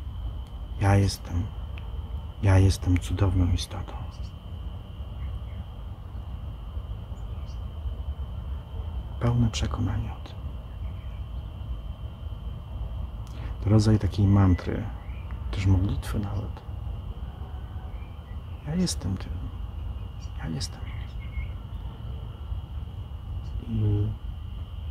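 A middle-aged man speaks calmly and close by, with long pauses.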